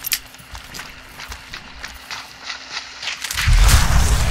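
Footsteps rustle through leafy undergrowth.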